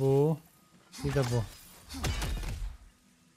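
A blade strikes with sharp impacts.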